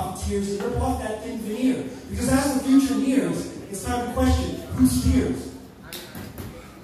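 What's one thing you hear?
A man raps rhythmically into a microphone over loudspeakers.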